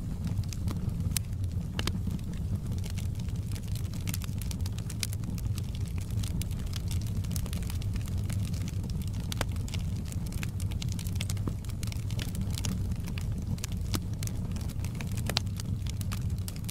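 A fire roars with a low, steady rumble.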